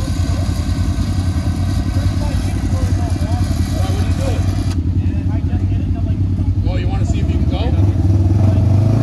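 An off-road vehicle's engine rumbles low and steady close by.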